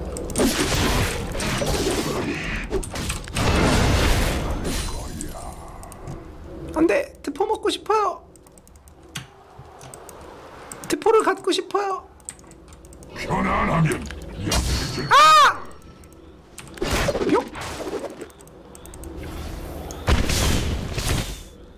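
Game sound effects of spells and hits play.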